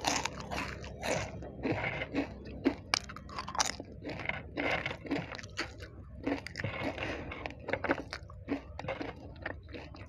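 Flaky pastry crackles as fingers break it apart.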